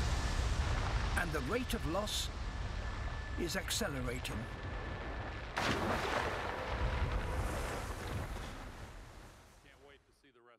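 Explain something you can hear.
Ice crashes down and rumbles heavily.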